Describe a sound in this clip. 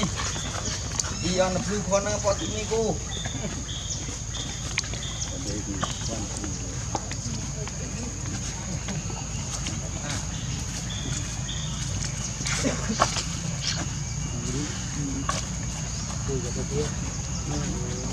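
A baby monkey squeals and whimpers close by.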